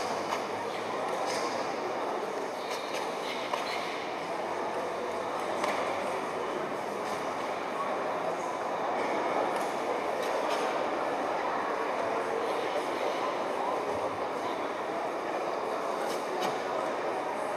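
A karate uniform snaps sharply with quick strikes.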